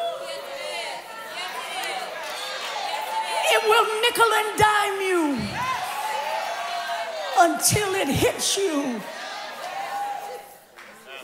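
A woman speaks with animation through a microphone in a large echoing hall.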